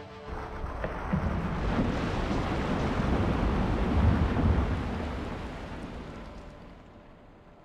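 Water crashes and roars in a huge splash.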